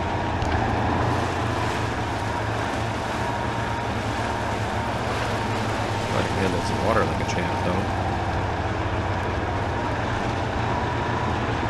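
A truck engine rumbles steadily as the truck crawls along.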